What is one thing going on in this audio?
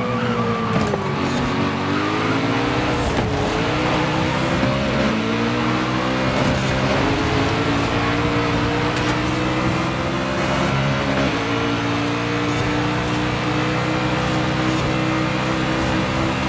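A car engine roars and revs higher through the gears.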